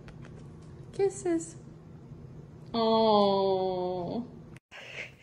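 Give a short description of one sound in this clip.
A young woman speaks affectionately in a high voice, close by.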